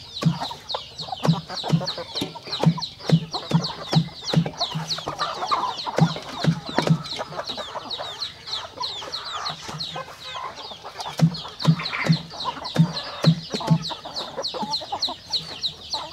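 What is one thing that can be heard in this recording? Chickens chirp and cluck nearby.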